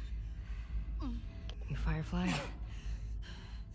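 A young woman asks a question in a low, tense voice, close by.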